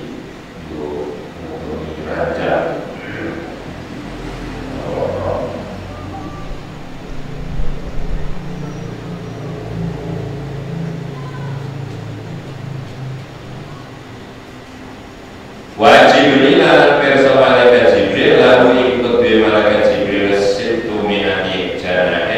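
An electric fan hums.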